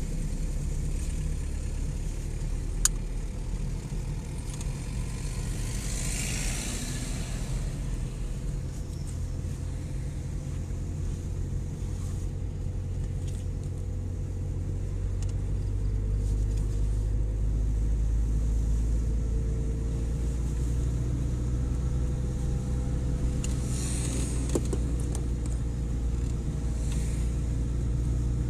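Tyres roll over the road at speed.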